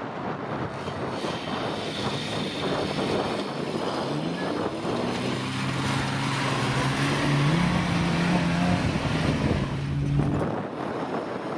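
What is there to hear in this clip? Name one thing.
A car engine revs and labours, growing louder as it nears.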